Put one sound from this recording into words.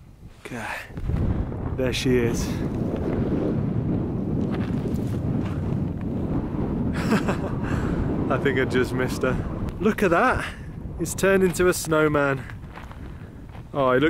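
Wind blows hard, rumbling across the open air.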